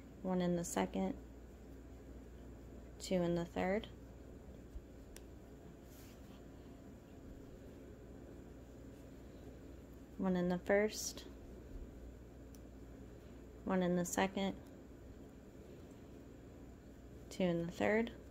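A crochet hook softly pulls yarn through stitches.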